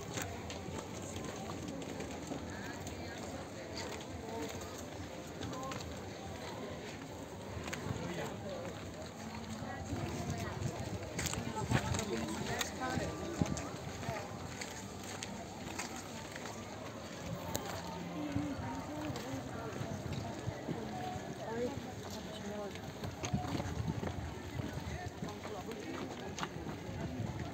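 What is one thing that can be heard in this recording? Many voices of people chatter and murmur at a distance outdoors.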